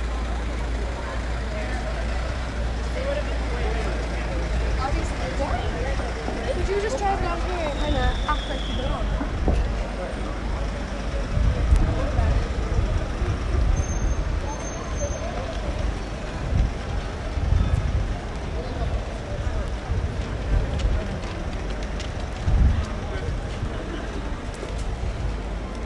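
Footsteps shuffle on paving.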